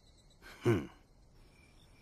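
An older man gives a short, sly chuckle close by.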